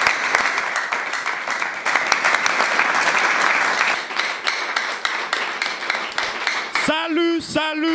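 A group of people applaud in a room.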